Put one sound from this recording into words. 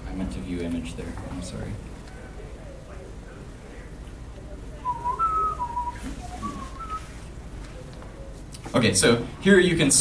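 A man speaks into a microphone to a room, heard over a loudspeaker with some echo.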